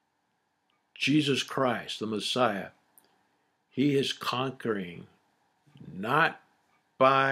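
A middle-aged man speaks calmly and expressively into a close microphone, with pauses.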